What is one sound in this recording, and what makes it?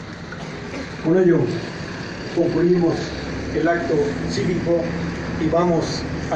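A man speaks through a microphone and loudspeaker outdoors.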